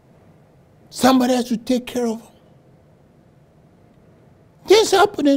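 An elderly man preaches with animation through a microphone, pausing between phrases.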